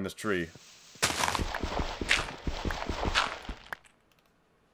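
Dirt crunches repeatedly as it is dug out.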